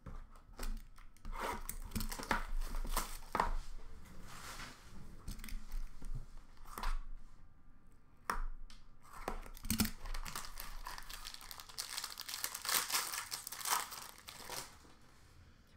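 Plastic card packs rustle and clack as hands sort through them.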